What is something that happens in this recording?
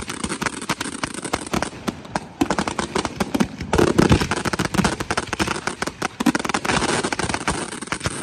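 Fireworks bang and crackle in rapid bursts.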